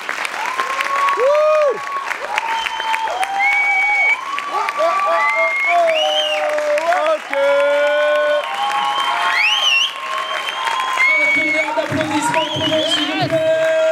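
A large audience cheers, whoops and whistles loudly.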